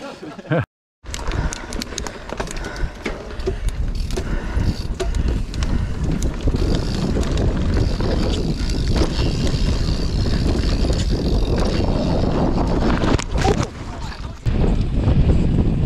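Wind rushes loudly past while riding.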